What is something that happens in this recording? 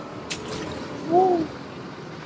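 A short electronic chime rings.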